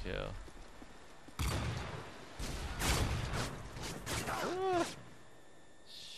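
A sniper rifle fires a loud shot.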